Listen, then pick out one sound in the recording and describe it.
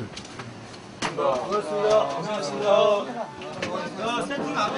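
Several young men talk and thank one another with animation, close by.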